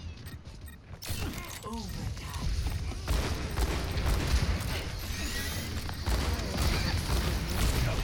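Gunfire and blasts clatter in a busy fight.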